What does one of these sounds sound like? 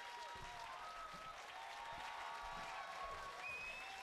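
A drummer crashes cymbals and drums.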